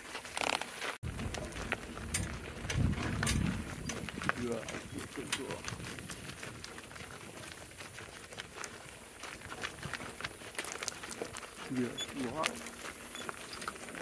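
Hooves clop on a gravel road.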